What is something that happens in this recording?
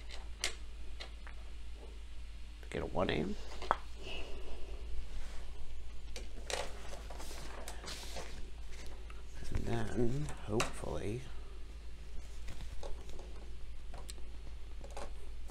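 Small plastic figures tap and click as they are set down on a table.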